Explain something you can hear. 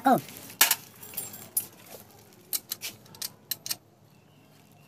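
Metal tools click and tap against engine parts.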